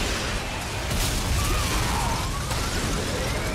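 A car crashes and bursts into flames.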